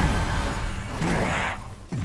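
A blade swipes through the air with a whoosh.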